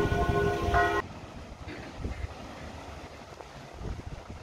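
A river flows and rushes steadily.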